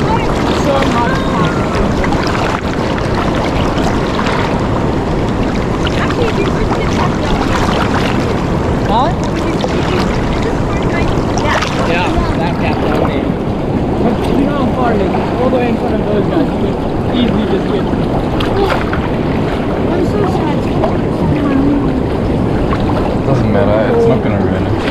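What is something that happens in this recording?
Young boys talk and call out to each other outdoors.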